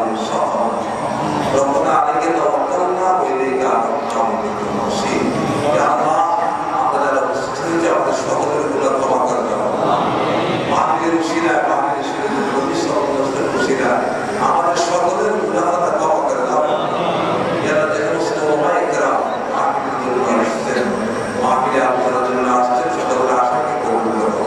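An elderly man recites a prayer in a chanting voice through a microphone and loudspeakers.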